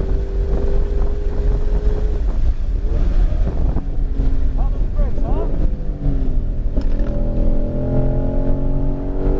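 A car engine roars loudly, rising and dropping in pitch as gears change.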